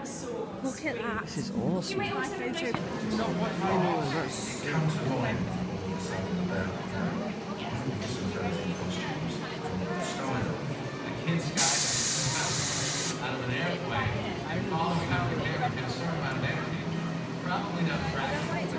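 A crowd of people chatters and murmurs in a large echoing hall.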